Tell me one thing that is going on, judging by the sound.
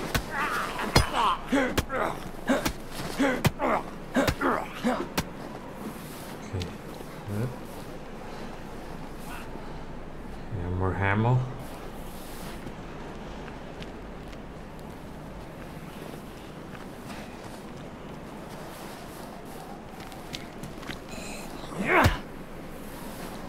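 A zombie growls and snarls up close.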